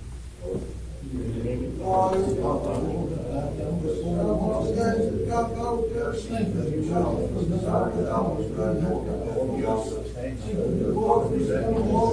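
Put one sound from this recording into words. A man prays aloud in a calm, steady voice in an echoing room.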